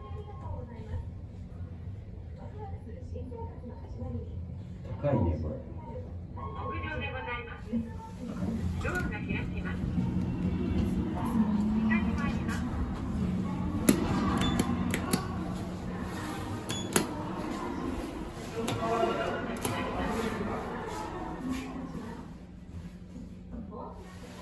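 An elevator hums steadily as it moves.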